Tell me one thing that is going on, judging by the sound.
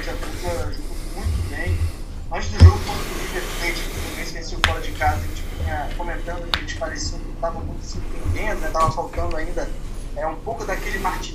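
A man speaks calmly into a microphone, slightly muffled by a face mask.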